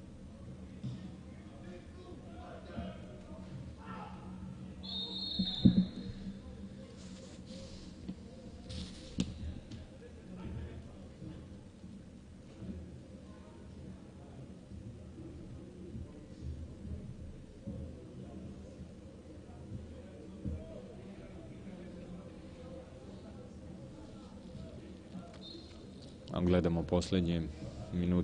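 A crowd murmurs in an open stadium.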